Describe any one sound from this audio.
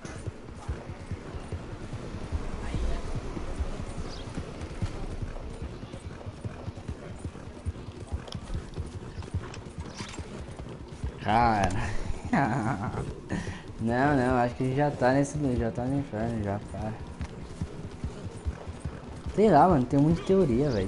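A horse gallops, its hooves thudding on a dirt trail.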